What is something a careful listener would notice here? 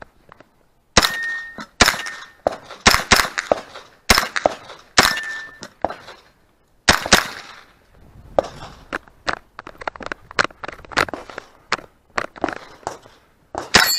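A shotgun fires loud shots in quick bursts outdoors.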